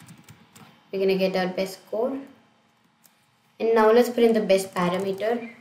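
A young woman speaks calmly into a microphone, close by.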